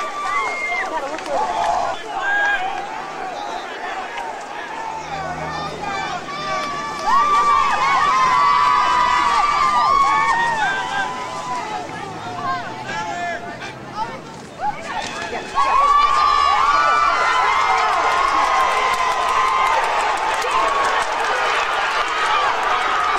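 A crowd of young men and spectators shouts and cheers outdoors.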